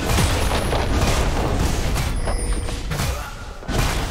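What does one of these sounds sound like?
Game spell effects crackle and burst in quick succession.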